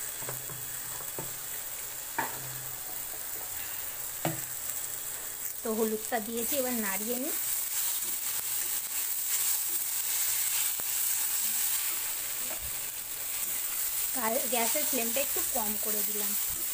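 Vegetables sizzle as they fry in a hot wok.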